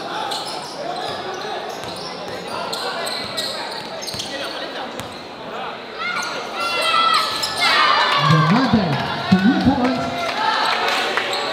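A large crowd chatters and cheers in an echoing indoor hall.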